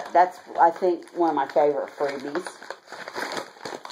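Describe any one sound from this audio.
Plastic wrapping crinkles in a woman's hands.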